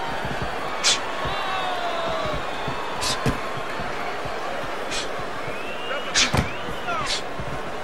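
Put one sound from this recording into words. A crowd murmurs and cheers steadily in a large hall.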